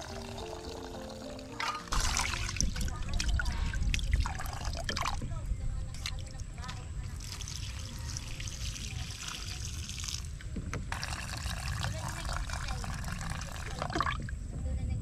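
Water trickles from a tap into a metal pot.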